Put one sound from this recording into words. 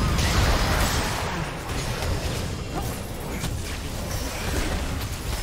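Game characters strike each other with sharp hits.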